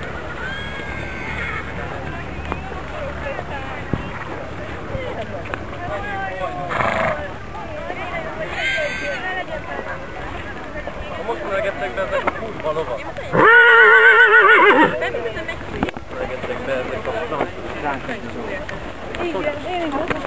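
Young men and women chat and call out nearby outdoors.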